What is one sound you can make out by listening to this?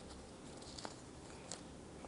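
Cloth rustles softly as a hand handles it.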